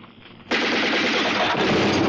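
A man cries out in pain.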